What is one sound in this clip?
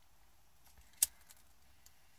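A lighter clicks and sparks.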